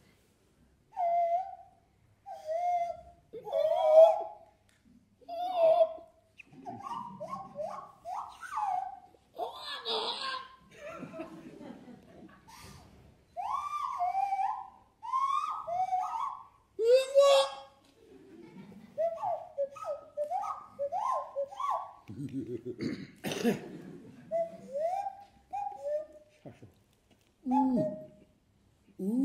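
An elderly man plays quick gliding notes on a small instrument held to his mouth.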